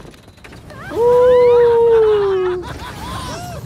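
A young woman screams loudly as the ride plunges.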